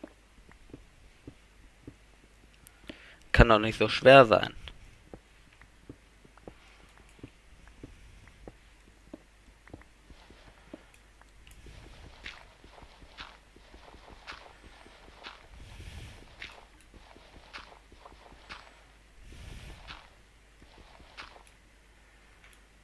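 Blocks of stone crack and break with quick, repeated clicks.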